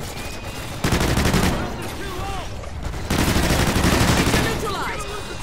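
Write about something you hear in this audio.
A rifle fires rapid automatic bursts.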